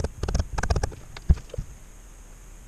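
Small wooden blocks knock and tap against a wooden board.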